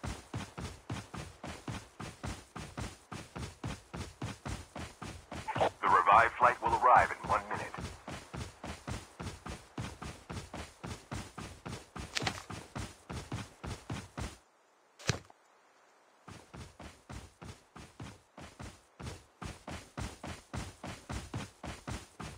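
Footsteps run quickly and evenly over grass.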